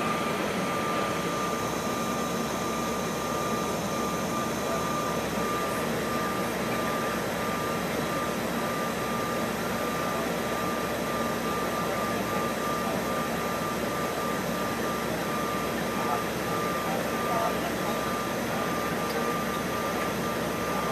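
Jet engines roar steadily with a constant whine.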